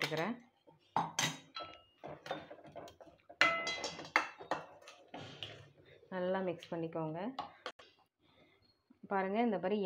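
A metal ladle clinks and scrapes against a steel pot.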